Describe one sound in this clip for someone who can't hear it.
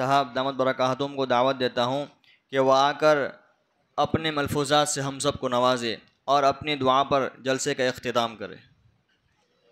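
A man recites in a loud, melodic voice through a microphone.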